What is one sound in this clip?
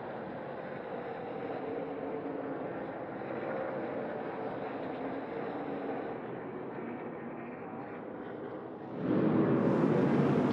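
Racing truck engines roar loudly as they speed past.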